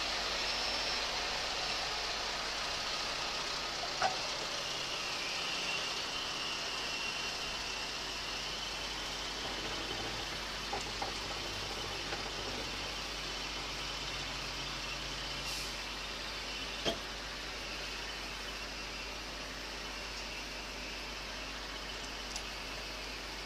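A crane's motor hums steadily.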